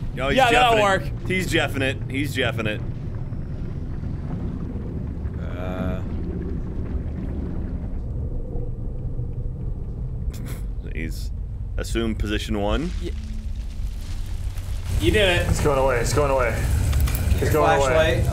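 A man talks excitedly close to a microphone.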